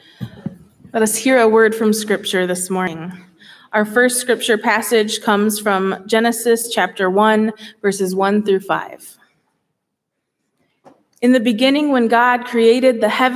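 A young woman speaks calmly through a microphone in a large echoing hall.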